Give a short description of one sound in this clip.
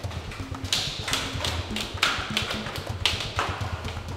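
Footsteps come down indoor stairs.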